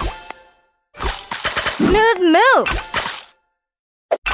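A cheerful game jingle swells with a bright flourish.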